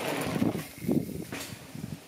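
A bicycle lands with a thud on dirt.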